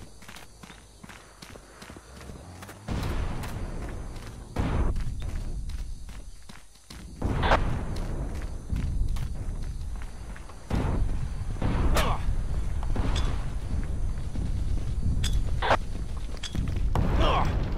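Footsteps thud over soft ground.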